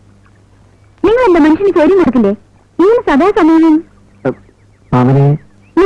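A man speaks in a pleading voice, close by.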